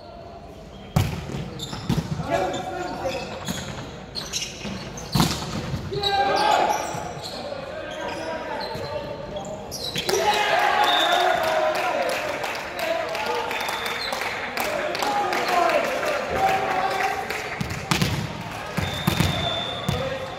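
A volleyball thuds as players hit it, echoing in a large gym.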